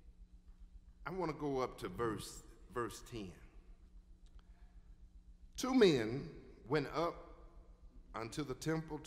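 A man preaches with feeling into a microphone, in bursts between pauses.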